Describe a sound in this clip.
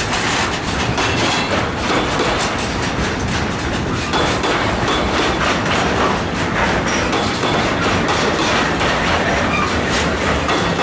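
A container freight train rolls past with a steady rumble.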